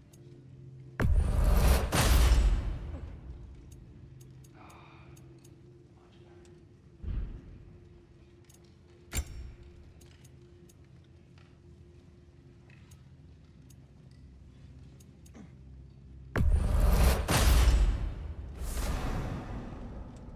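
A deep whooshing rumble swells and fades as an item is crafted.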